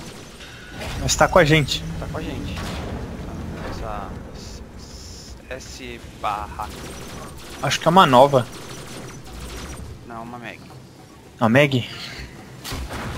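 A young man speaks excitedly into a close microphone.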